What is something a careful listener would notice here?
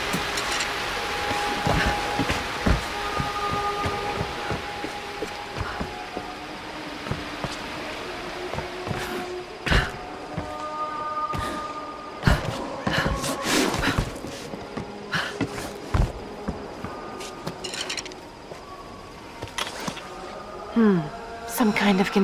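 Footsteps thud on wooden planks and rocky ground.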